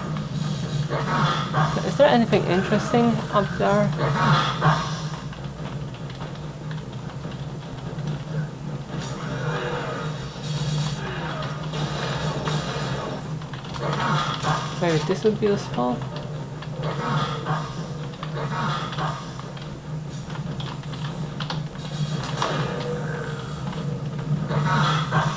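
Computer keys clack rapidly under fingers.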